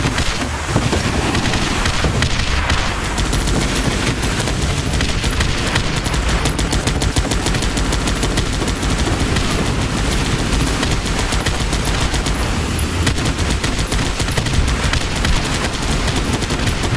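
Explosions boom again and again.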